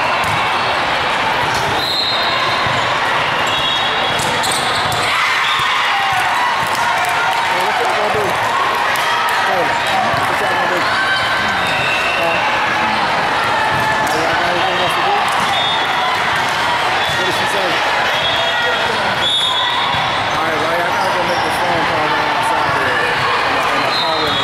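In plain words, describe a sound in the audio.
Young women players call out to each other.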